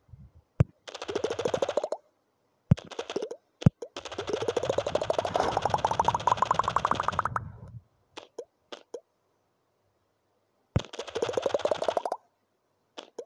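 Rapid crunching smashes rise steadily in pitch.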